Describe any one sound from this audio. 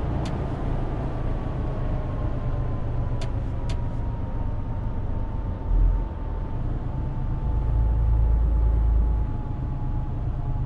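A truck engine hums low and steady while driving.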